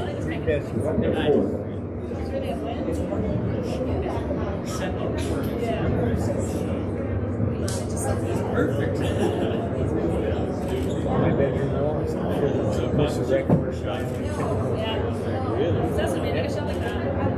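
A crowd murmurs behind glass.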